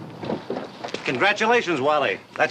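A man speaks up nearby.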